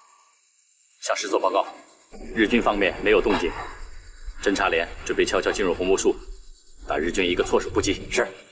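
A middle-aged man reports in a low, urgent voice, close by.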